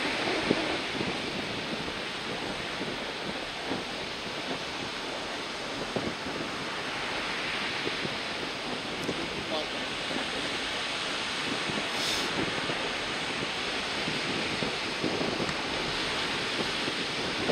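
Wind blows hard outdoors, rumbling steadily.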